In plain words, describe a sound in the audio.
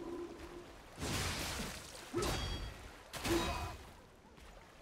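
Heavy weapons strike with loud crashing impacts.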